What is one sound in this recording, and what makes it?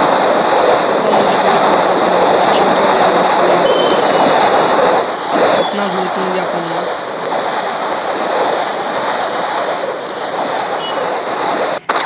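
Wind rushes loudly, then eases.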